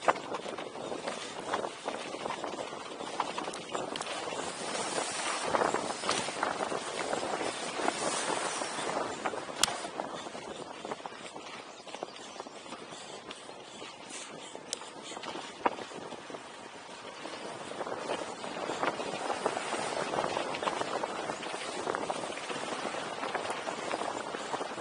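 Bicycle tyres roll and crunch over a dirt trail.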